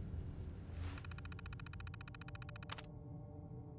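A computer terminal chirps in a rapid, even patter as text prints out.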